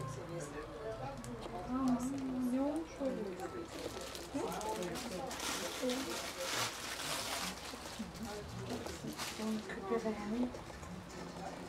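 A middle-aged woman talks softly and closely.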